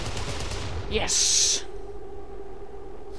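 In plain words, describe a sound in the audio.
A loud explosion bursts nearby.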